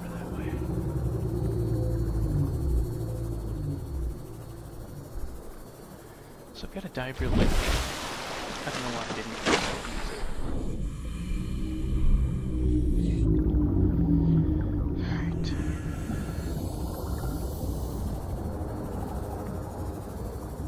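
A deep underwater rumble drones steadily.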